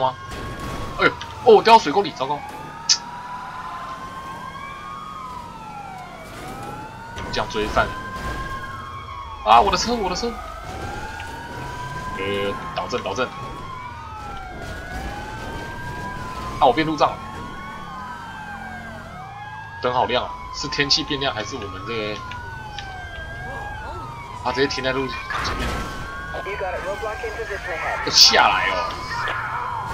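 A police siren wails steadily up and down.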